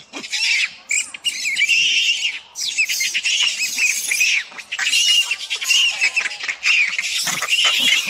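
A baby monkey screeches and squeals close by, over and over.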